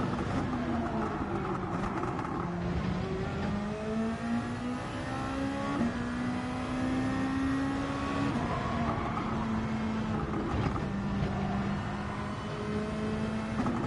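A racing car engine revs high, rising and falling as the gears shift.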